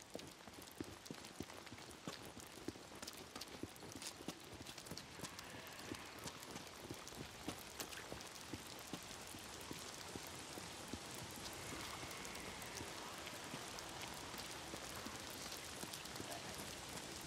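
Footsteps splash quickly on a wet road.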